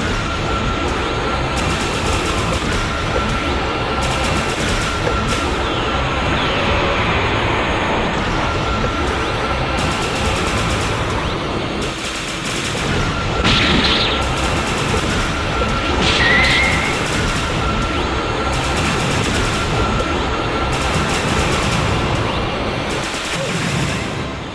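Energy blasts whoosh and crackle in a video game.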